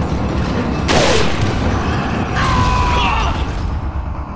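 A man cries out in pain.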